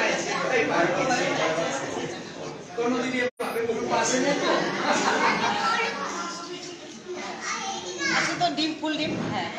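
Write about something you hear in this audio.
A crowd of men and women talk and shout over one another close by.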